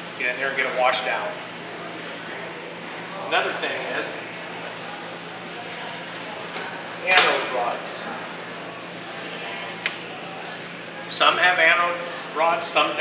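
A middle-aged man speaks to a small audience in bursts, with pauses in between.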